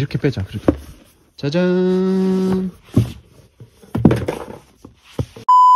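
Cardboard scrapes as a stack of books slides out of a box.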